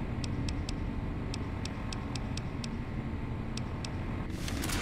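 Soft menu clicks tick quickly, one after another.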